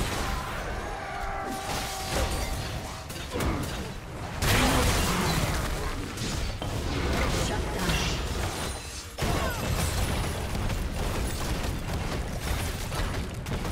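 Magic spells crackle and blast in a fast fantasy battle.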